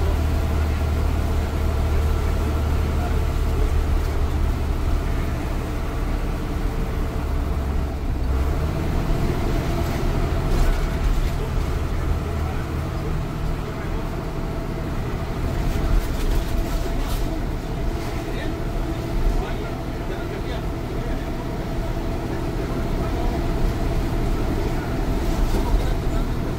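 The bus body rattles and clatters over the road.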